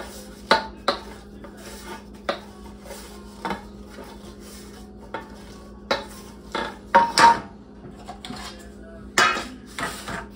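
Metal pie tins clatter and clank on a wooden table.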